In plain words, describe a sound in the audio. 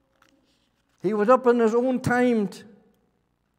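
An elderly man speaks through a microphone in an echoing hall.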